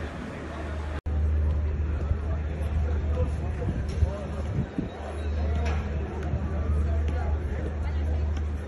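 A boy juggles a football with his feet, the ball thudding softly on each touch outdoors.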